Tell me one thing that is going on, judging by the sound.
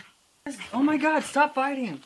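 A dog barks.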